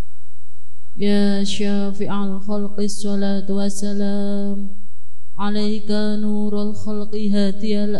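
A young woman chants a recitation in a long, melodic voice through a microphone.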